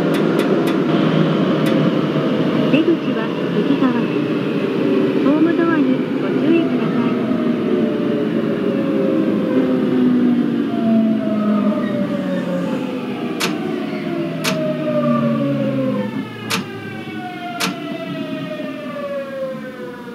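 A train's electric motor whines and slowly falls in pitch as the train brakes.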